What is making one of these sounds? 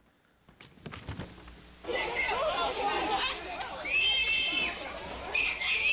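A crowd murmurs and shouts outdoors.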